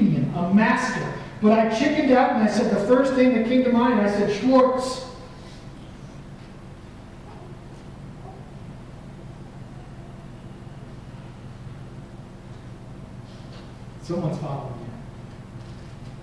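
A man speaks into a microphone in a large, echoing room.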